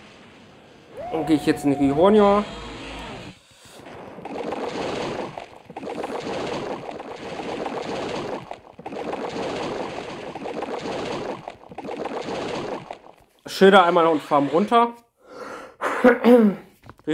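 A young man talks with animation into a headset microphone.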